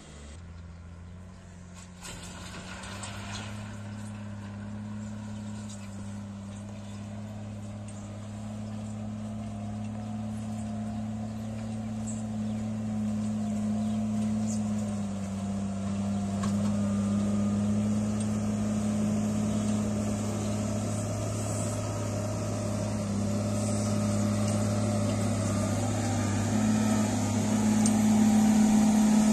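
A wheel loader's diesel engine rumbles steadily and grows louder as it comes closer.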